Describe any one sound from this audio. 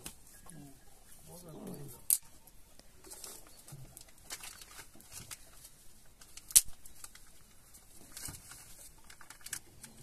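Dry twigs snap and crack.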